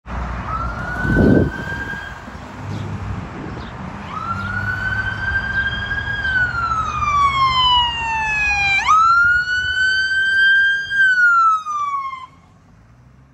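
A heavy truck engine rumbles as it passes.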